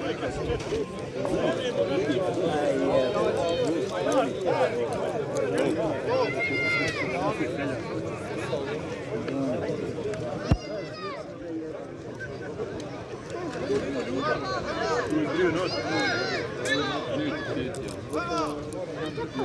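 Men nearby shout at close range.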